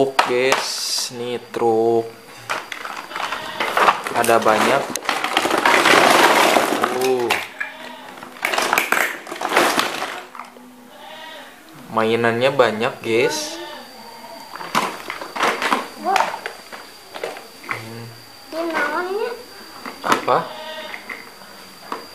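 A cardboard box scrapes and rustles as it is handled.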